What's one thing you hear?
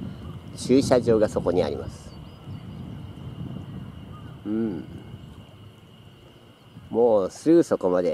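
Small waves lap softly at a pebbly shore.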